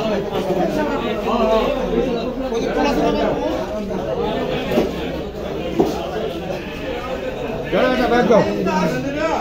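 Adult men and women talk loudly and busily close by, their voices overlapping.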